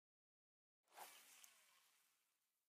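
A fishing line whooshes out on a cast.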